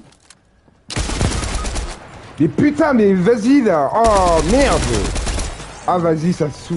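Gunshots crack in a video game.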